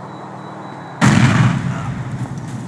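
A loud explosion booms and roars, then slowly fades.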